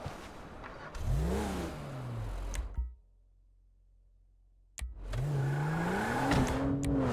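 A car engine starts and revs.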